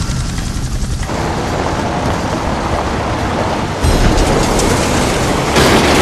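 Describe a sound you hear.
A heavy truck rumbles past.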